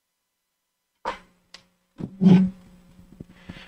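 A man taps a wooden stick against the floor a few times.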